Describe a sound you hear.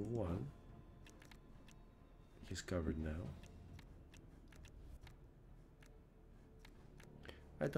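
Soft interface clicks tick as cards are selected.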